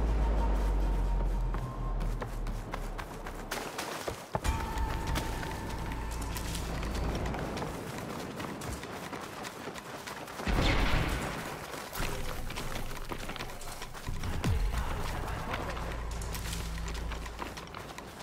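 Footsteps run over sand and through rustling plants.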